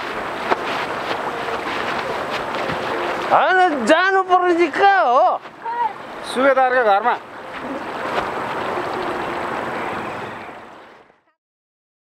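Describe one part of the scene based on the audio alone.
A river flows nearby.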